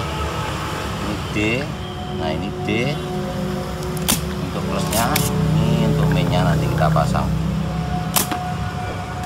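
A desoldering pump snaps with a sharp click.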